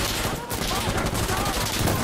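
A rifle fires in quick shots.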